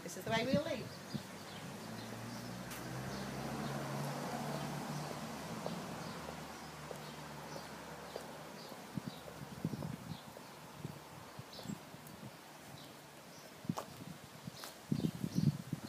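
Footsteps tread on paving and grass.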